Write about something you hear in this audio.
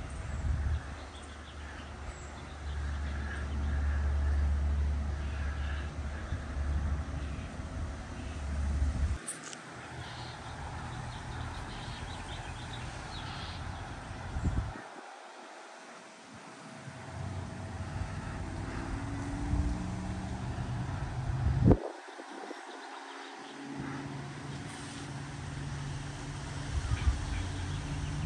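Leaves rustle in the breeze.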